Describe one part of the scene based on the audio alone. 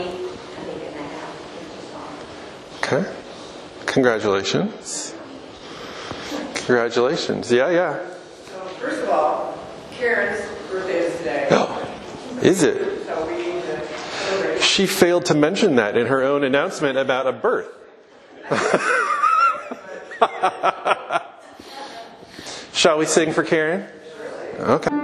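A man speaks with animation to a gathering in a large echoing hall.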